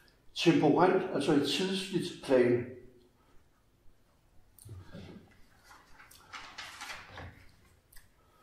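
An elderly man reads aloud calmly.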